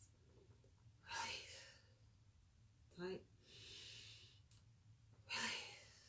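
A woman breathes out deeply and slowly.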